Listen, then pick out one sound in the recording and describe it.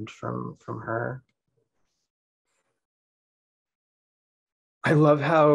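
A young woman speaks calmly through an online call microphone, pausing between phrases.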